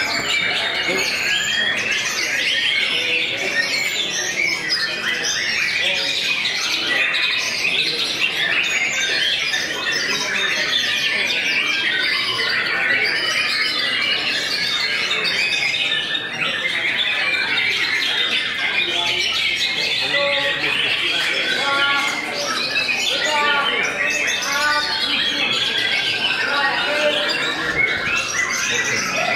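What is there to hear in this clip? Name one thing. Many songbirds sing and chirp loudly and without pause.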